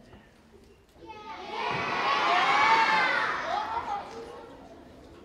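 A crowd of young children cheers and shrieks loudly in a large hall.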